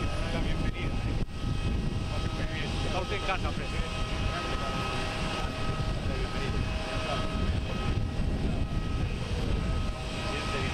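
Men talk with one another in friendly tones outdoors.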